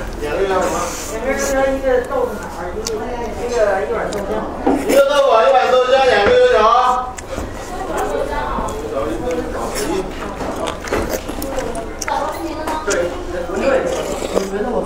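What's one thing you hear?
A young woman chews and slurps food.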